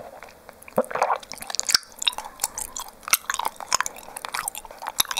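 A young woman makes soft, wet mouth clicks very close to a microphone.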